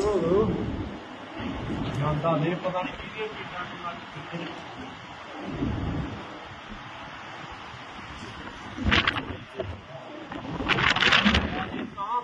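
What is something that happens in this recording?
Strong wind roars and gusts outdoors.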